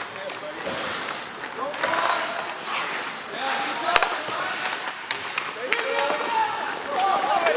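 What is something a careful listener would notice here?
Young players and spectators shout and cheer nearby.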